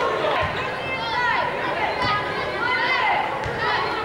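A basketball is dribbled on a hardwood floor.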